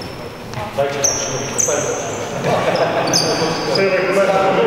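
Sneakers squeak sharply.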